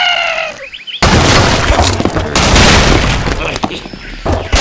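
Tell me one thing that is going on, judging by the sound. Wooden and stone blocks crash and topple.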